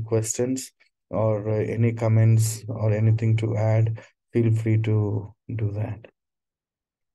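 A man speaks with animation over an online call.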